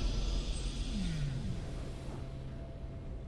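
A triumphant game fanfare plays with a bright chime.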